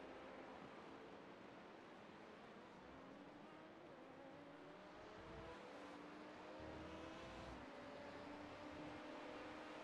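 A race car engine hums and rises in pitch as the car accelerates.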